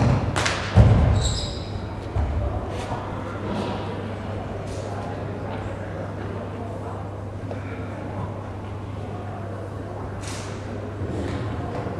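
Feet shuffle and step softly on a mat in a large hall.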